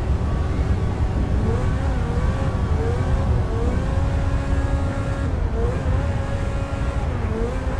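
A car engine hums and rises in pitch as it shifts up through the gears.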